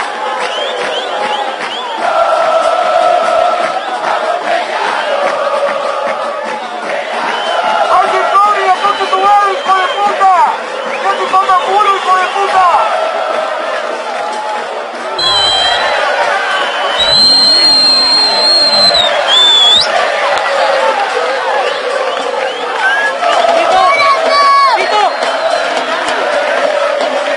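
A large crowd sings and chants loudly outdoors.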